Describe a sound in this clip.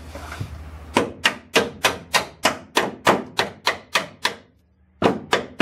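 A metal tool clicks and taps rapidly against a car's underside.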